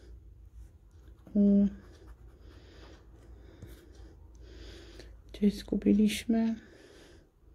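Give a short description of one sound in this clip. A plastic scraper scratches the coating off a card in short rasping strokes.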